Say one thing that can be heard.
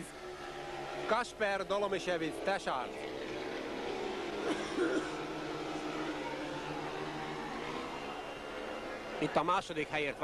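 Speedway motorcycle engines roar and whine as the bikes race around the track.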